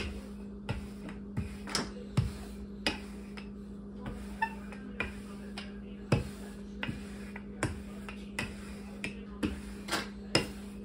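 A wooden rolling pin rolls and thumps over dough on a board.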